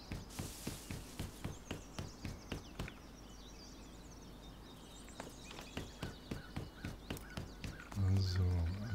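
Footsteps crunch steadily over dry ground.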